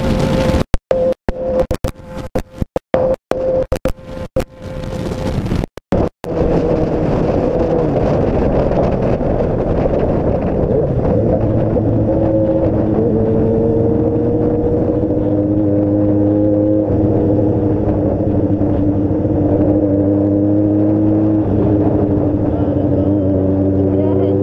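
Wind roars against the rider at speed.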